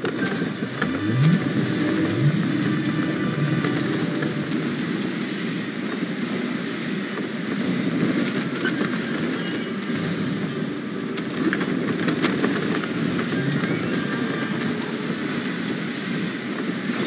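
Wind rushes steadily past a sailing ship.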